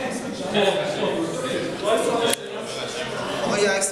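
Men talk calmly nearby.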